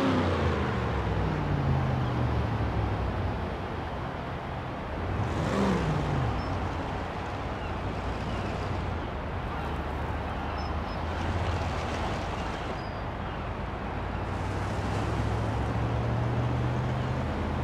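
A car engine drones steadily as the car drives off and speeds up.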